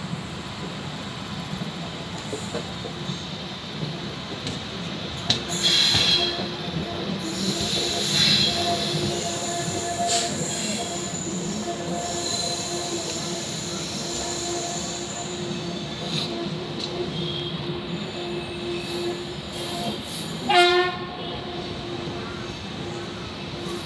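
Wind rushes past a moving train.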